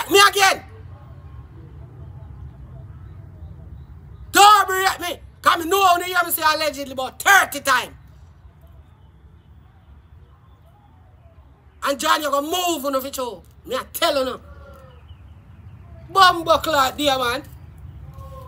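A young woman speaks close by with animation, in bursts.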